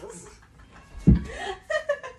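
Feet thump onto the floor.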